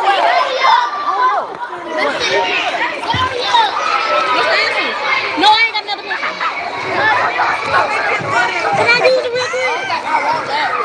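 A young girl talks with animation close to the microphone.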